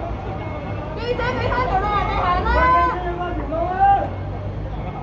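A man shouts loudly nearby, outdoors.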